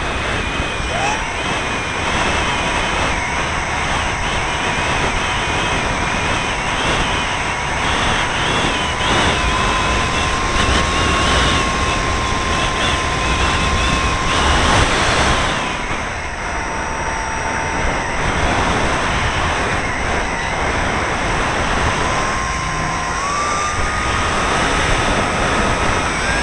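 Wind rushes loudly past the model aircraft.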